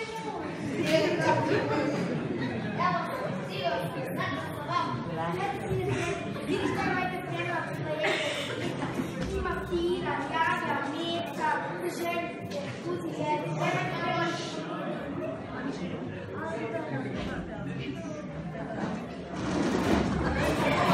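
A woman speaks on a stage, heard from the audience in a hall.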